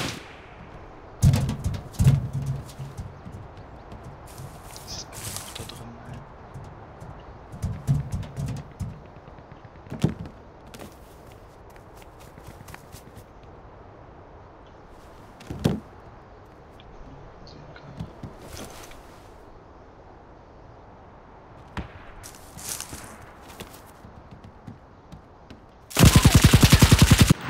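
Footsteps tread softly over roof tiles and wooden boards.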